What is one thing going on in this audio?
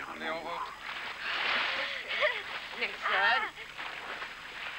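Children splash in water.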